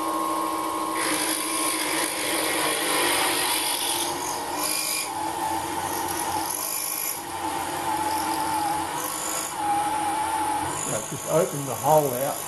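A small grinding wheel hisses and grinds against metal.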